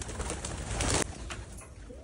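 Pigeons flap their wings as they take off.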